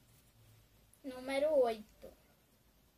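A young girl speaks briefly and clearly, close by.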